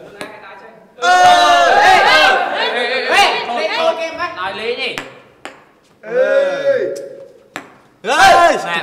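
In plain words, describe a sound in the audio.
A group of young women and men cheer and shriek excitedly nearby.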